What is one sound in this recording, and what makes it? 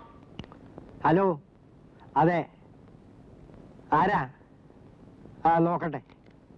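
An older man speaks into a telephone in short phrases.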